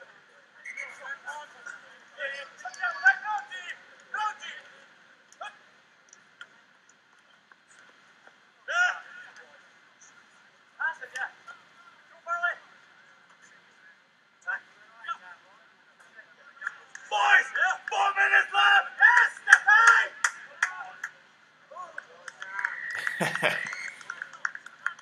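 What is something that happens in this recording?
Rugby players shout to each other outdoors across an open field.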